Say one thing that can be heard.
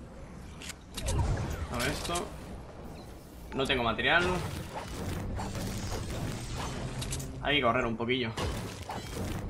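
A young man talks with animation into a microphone, close by.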